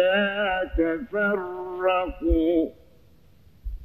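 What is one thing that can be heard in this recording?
An elderly man chants in a drawn-out, melodic voice through a microphone.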